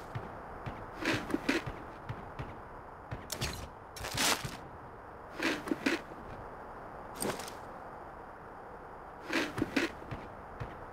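Gear rustles and clicks in short bursts as items are picked up.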